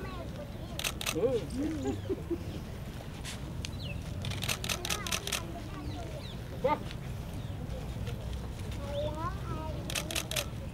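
An elderly man speaks softly to children nearby.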